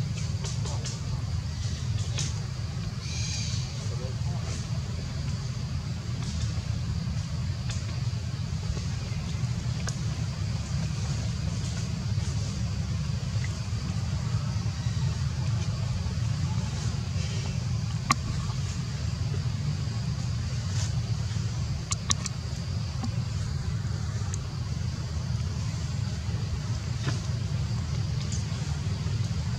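A baby monkey suckles with soft smacking sounds.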